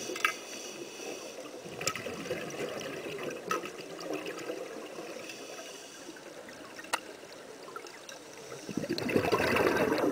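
Bubbles gurgle and burble from a diver's breathing gear, muffled underwater.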